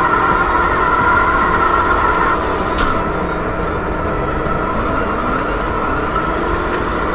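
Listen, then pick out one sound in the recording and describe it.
A small kart engine buzzes steadily.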